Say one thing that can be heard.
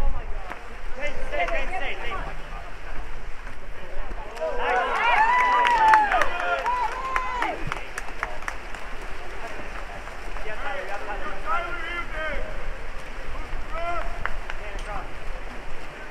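Spectators shout and cheer from a distance, outdoors.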